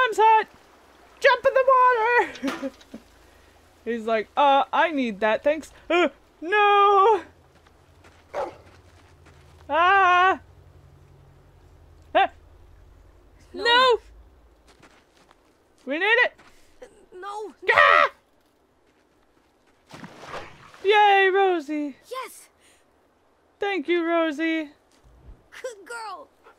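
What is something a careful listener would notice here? A young girl calls out and speaks with anxious animation.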